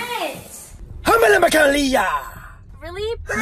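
A young man sings loudly in a mocking voice, close by.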